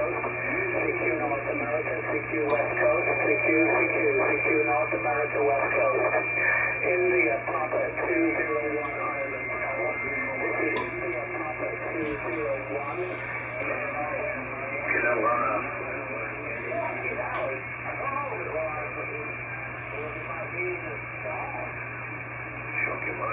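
Voices talk over a crackly radio loudspeaker.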